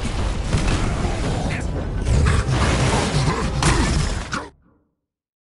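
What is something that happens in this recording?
Heavy punches thud and crash.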